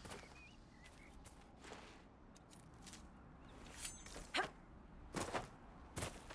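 Footsteps thud on grass and dirt.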